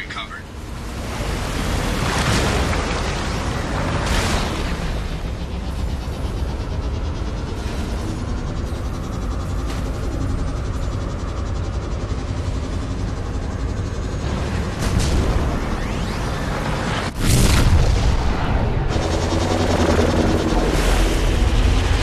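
A hovering vehicle's engine hums and roars steadily.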